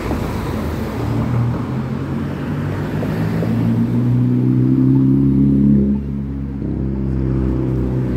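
Car engines hum and rumble nearby.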